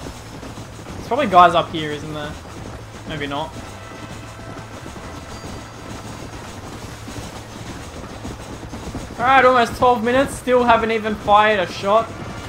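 Horses gallop with thudding hooves.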